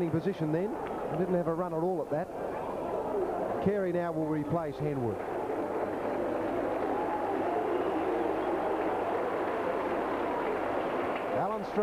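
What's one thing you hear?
A large crowd murmurs steadily in an open stadium.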